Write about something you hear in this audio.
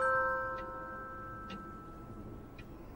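A clock chimes a ringing note that fades.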